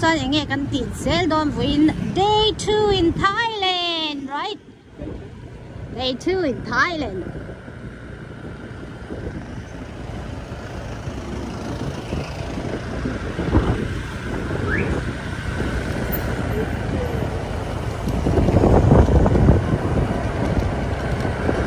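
Traffic passes along a busy street.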